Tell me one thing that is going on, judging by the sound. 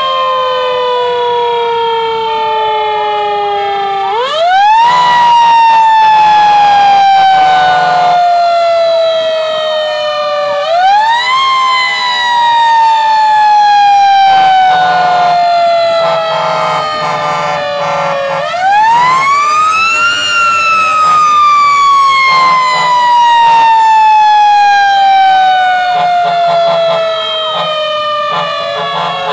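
A fire engine's motor rumbles steadily.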